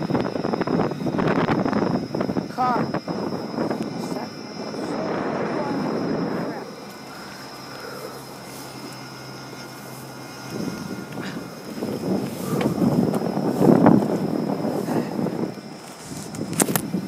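Wind buffets the microphone in gusts.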